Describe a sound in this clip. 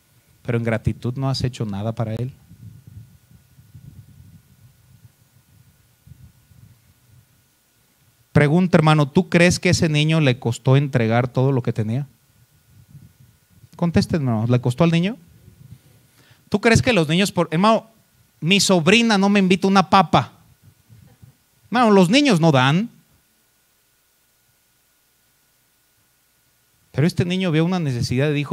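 A man preaches into a microphone with animation, in bursts with pauses.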